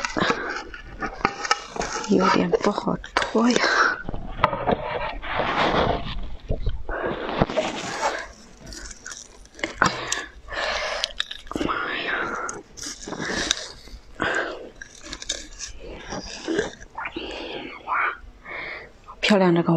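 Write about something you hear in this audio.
A young woman bites and crunches ice loudly close to a microphone.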